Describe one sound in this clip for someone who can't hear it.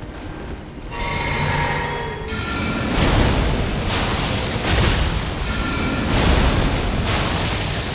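Magic spells shimmer and whoosh with a bright humming ring.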